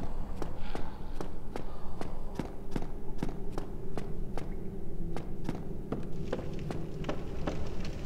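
Bare footsteps patter quickly on stone.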